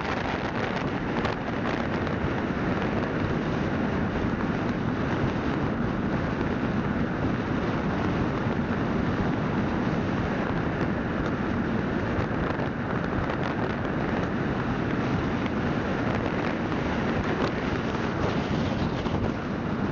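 Wind rushes loudly past a small vehicle moving along a road.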